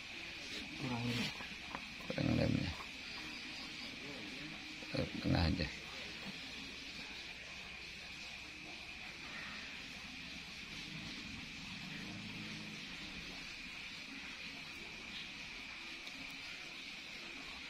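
A paintbrush brushes softly across a hard surface.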